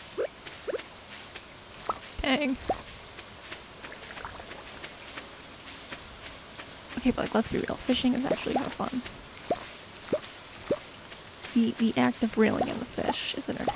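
Rain patters steadily.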